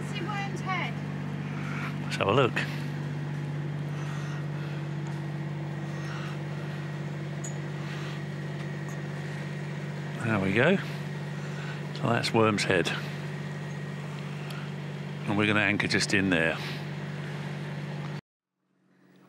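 A boat's engine hums steadily.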